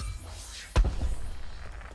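A blade strikes with a sharp impact.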